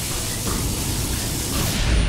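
Electricity crackles and buzzes.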